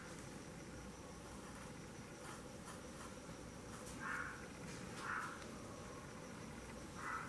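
A brush dabs and scrapes softly on canvas.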